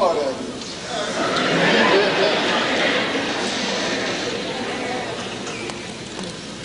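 An audience laughs and cheers in a large hall.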